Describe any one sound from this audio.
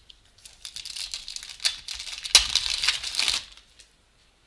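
A foil wrapper crinkles and tears as it is torn open close by.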